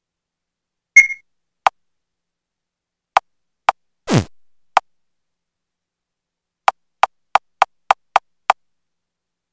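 Short electronic blips sound as menu options are selected.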